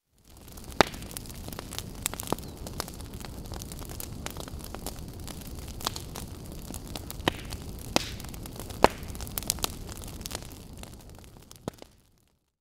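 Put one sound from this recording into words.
A fire roars steadily.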